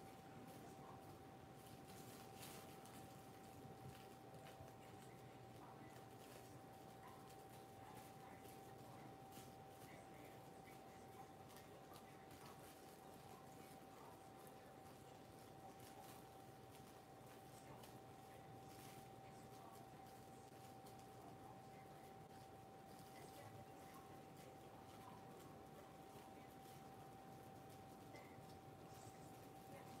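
Plastic wrap crinkles and rustles between hands.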